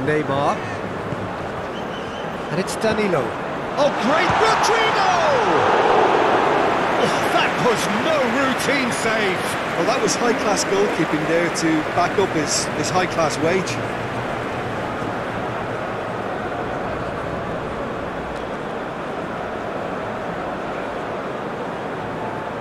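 A large crowd roars and cheers loudly in an open stadium.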